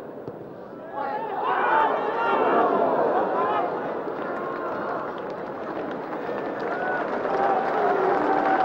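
A stadium crowd suddenly roars and cheers loudly.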